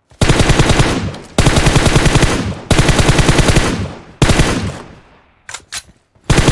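An automatic rifle fires rapid bursts of shots.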